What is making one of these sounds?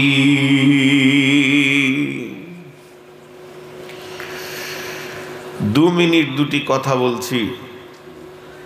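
A middle-aged man preaches passionately through a loudspeaker microphone, his voice echoing.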